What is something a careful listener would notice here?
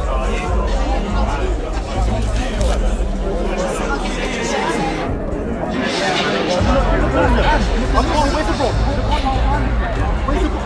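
A crowd chatters in a large echoing arena.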